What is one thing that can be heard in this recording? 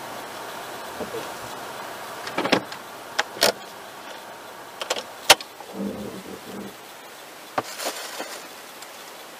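Raindrops tap now and then on a car windshield.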